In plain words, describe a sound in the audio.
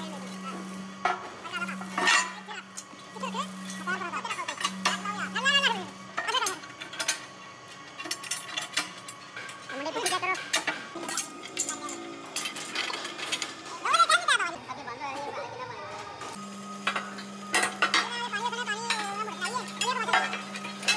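Men talk nearby with animation.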